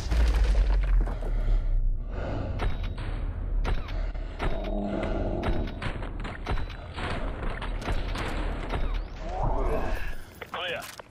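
Rapid gunfire bursts loudly and echoes in a room.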